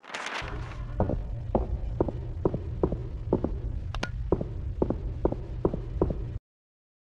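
Footsteps run quickly and steadily over the ground.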